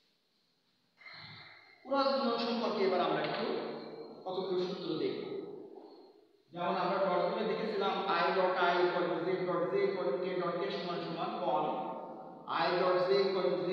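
A man speaks calmly and steadily to listeners nearby.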